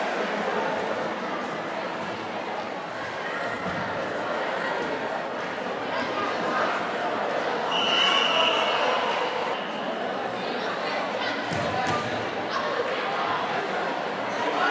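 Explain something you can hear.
A crowd of spectators murmurs and cheers in a large echoing hall.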